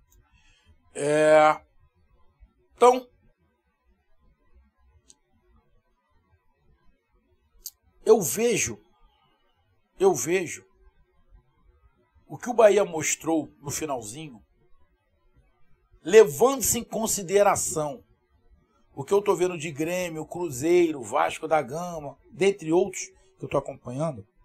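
A middle-aged man speaks with animation into a close microphone, pausing between phrases.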